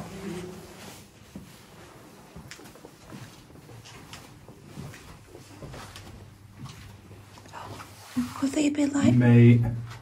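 Footsteps crunch on a debris-strewn floor.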